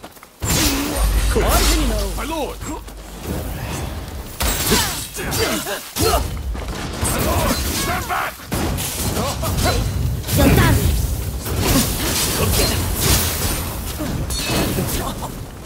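Swords clash and ring in quick strikes.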